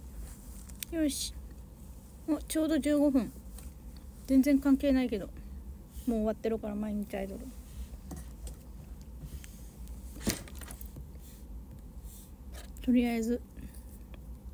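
A young woman talks close to a phone microphone in short, casual bursts.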